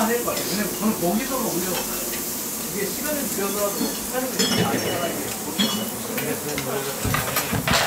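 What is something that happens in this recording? Chopsticks and dishes clink against one another.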